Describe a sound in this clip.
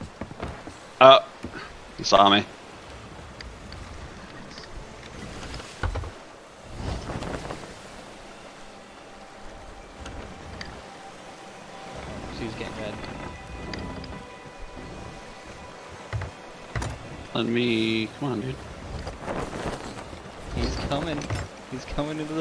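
Waves wash and churn against a wooden ship's hull.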